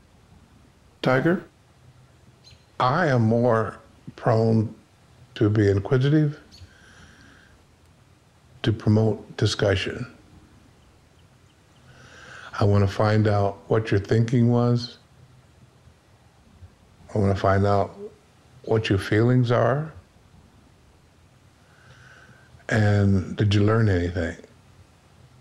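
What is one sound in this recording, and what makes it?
A man speaks slowly and calmly, with long pauses.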